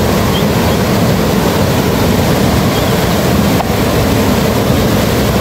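A swollen river roars and rushes loudly close by.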